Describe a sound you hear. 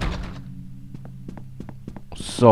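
Light footsteps tap on a wooden floor.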